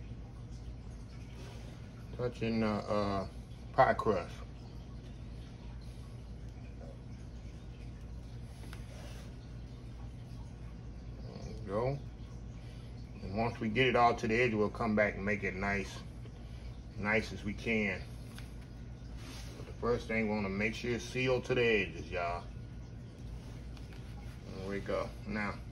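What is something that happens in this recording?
A spatula spreads soft meringue over a pie.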